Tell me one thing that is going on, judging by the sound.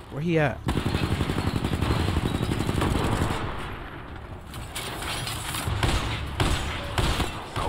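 Rapid machine gun fire rattles in a game.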